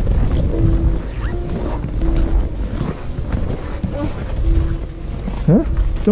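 Boots crunch on packed snow.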